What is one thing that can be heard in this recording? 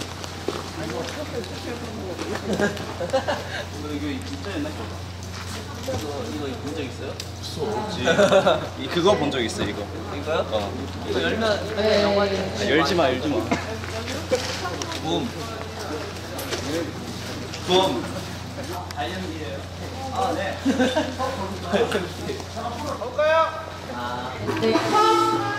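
Young men talk and joke with animation close by.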